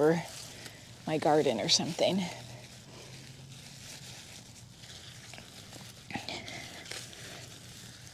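A trowel scrapes and digs into mulch and soil.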